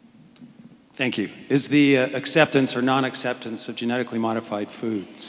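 A man speaks calmly into a microphone, heard through a loudspeaker in a large room.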